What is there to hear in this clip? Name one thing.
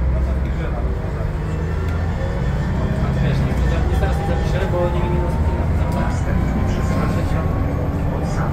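A bus engine whines, rising in pitch as the bus speeds up.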